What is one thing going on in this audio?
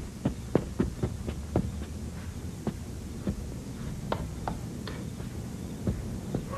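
Hard-soled shoes click across a hard floor.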